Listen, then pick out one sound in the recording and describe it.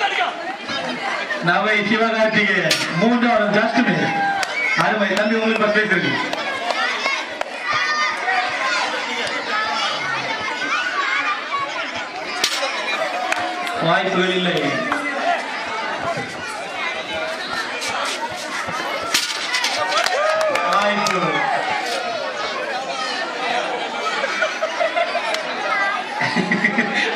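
Children shout and chatter in the background.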